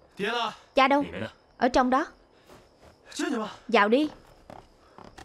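A man speaks sharply nearby.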